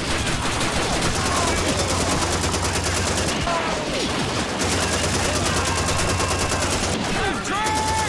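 A heavy machine gun fires in rapid, loud bursts.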